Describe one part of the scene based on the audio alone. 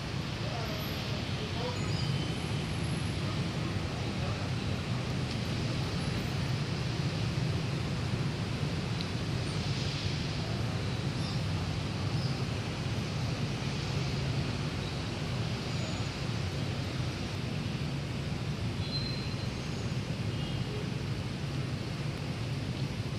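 Wind rustles the leaves of trees steadily.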